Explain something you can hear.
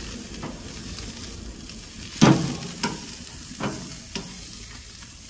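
Metal tongs clank against a grill grate.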